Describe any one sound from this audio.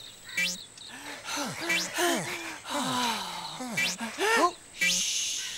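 A man talks in a playful, squeaky character voice.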